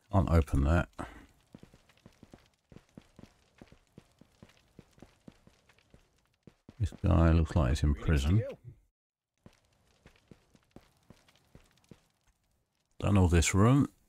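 Footsteps thud on a stone floor in an echoing space.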